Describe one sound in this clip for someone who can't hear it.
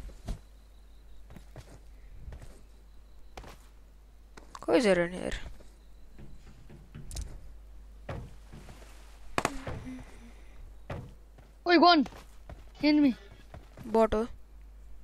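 Footsteps thud quickly on hollow metal.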